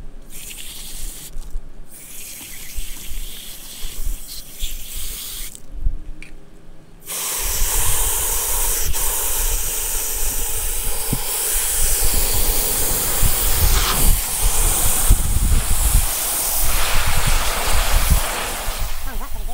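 Water sprays from a hose nozzle into a plastic bucket.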